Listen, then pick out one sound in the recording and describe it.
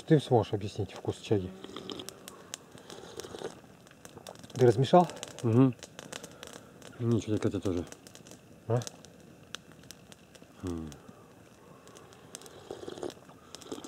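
A man sips a drink from a metal mug.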